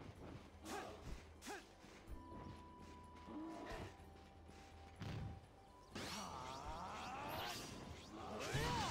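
A sword swishes and strikes in quick slashes.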